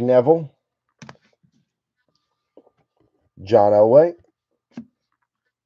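A plastic card case clicks down onto a shelf.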